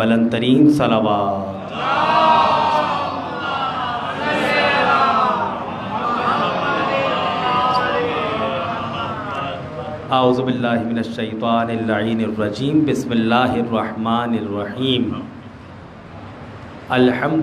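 A middle-aged man speaks with feeling through a microphone and loudspeakers in an echoing hall.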